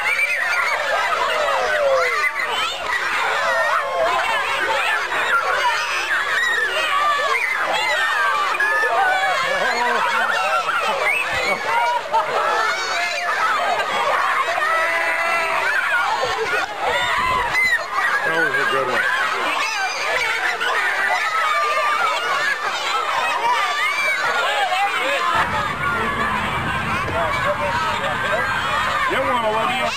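A crowd of young children shout and chatter excitedly outdoors.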